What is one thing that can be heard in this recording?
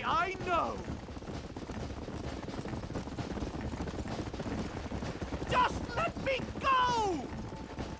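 Horse hooves pound steadily on a dirt trail at a gallop.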